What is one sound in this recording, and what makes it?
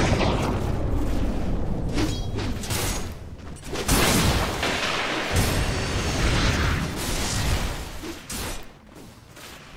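Game spells blast and crackle in a loud, chaotic fight.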